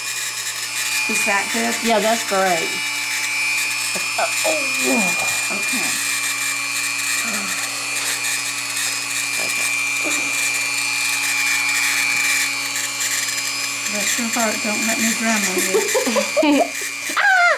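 A rotary nail grinder whirs with a steady high hum.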